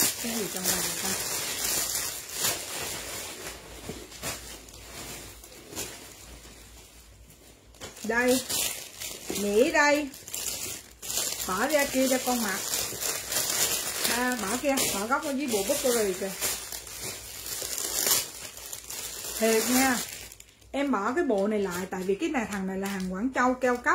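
A woman talks with animation close to the microphone.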